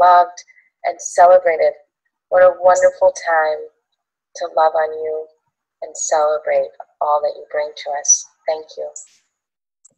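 A young woman speaks warmly and cheerfully, close to a microphone.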